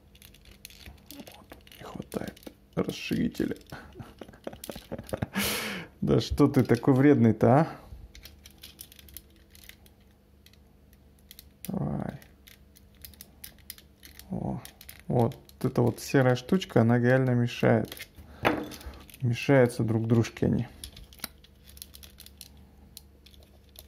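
Small plastic toy parts click and snap as they are twisted into place.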